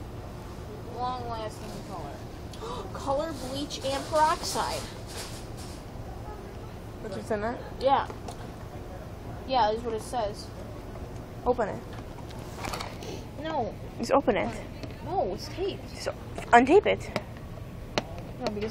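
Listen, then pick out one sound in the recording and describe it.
A young woman talks casually close by.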